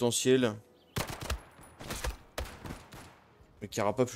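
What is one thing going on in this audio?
A rifle fires several sharp shots in quick succession.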